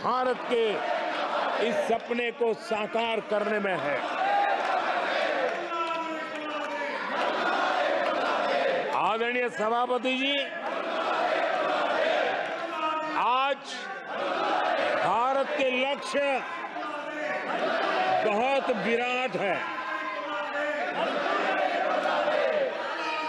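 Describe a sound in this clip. An elderly man speaks forcefully into a microphone in a large hall.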